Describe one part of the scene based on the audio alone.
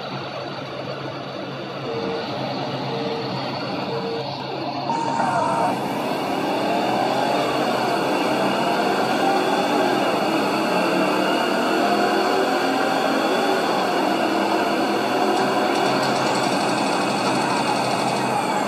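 Racing car engines roar and whine from a game.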